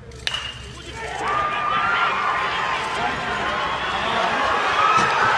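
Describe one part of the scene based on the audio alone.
A crowd cheers and shouts, growing louder.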